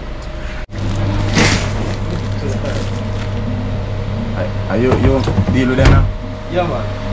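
Frozen packages thump onto a metal lid.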